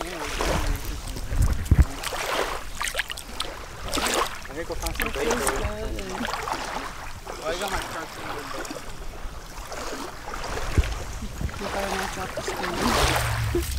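Bare feet splash through shallow water.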